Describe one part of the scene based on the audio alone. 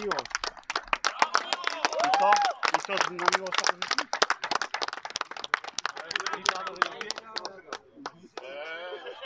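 A man claps his hands close by.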